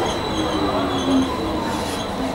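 Train brakes squeal briefly.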